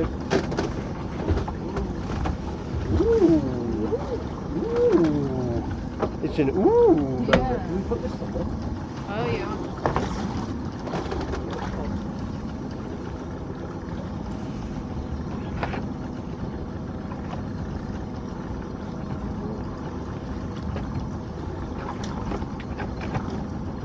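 Wire crab pots clatter and knock on a boat deck.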